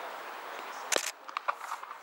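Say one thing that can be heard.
A cricket bat strikes a leather ball with a sharp crack.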